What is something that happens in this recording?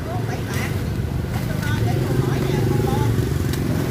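A machete chops into coconut husk with dull thuds.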